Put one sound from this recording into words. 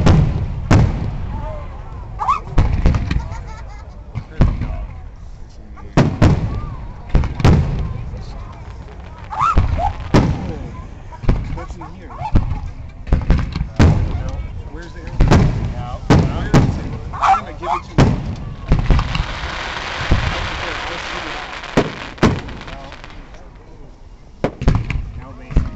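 Fireworks burst with loud booming bangs that echo outdoors.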